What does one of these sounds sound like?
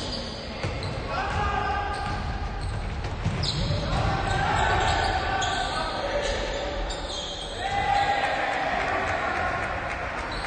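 Young men shout across an echoing gym.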